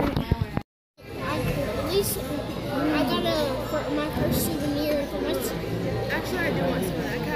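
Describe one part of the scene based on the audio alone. A boy talks close by.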